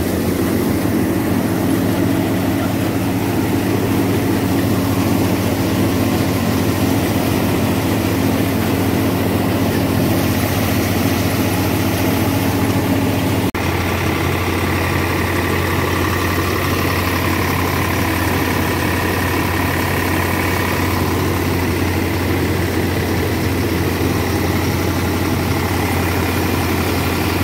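A three-cylinder diesel tractor engine runs under load.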